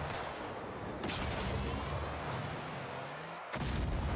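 A ball is struck with a thump.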